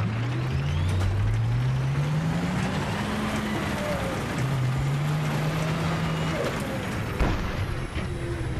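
A tank engine rumbles and whines, rising and falling in pitch.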